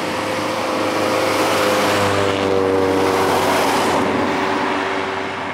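A car and a van drive past on an asphalt road.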